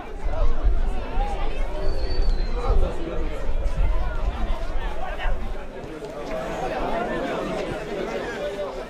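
A crowd of spectators murmurs and cheers outdoors.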